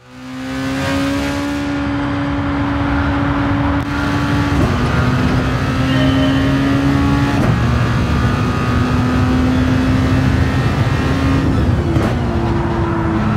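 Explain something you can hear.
A racing car engine roars at high revs, its pitch dropping and climbing again as the gears change.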